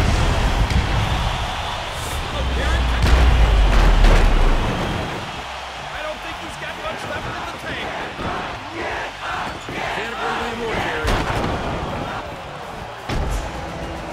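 Heavy bodies thud and slam onto a ring mat.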